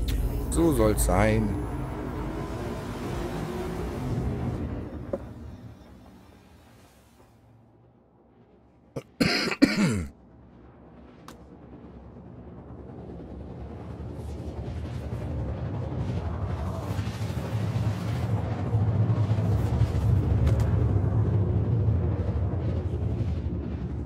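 A spacecraft engine rumbles low, fades away and then swells back up.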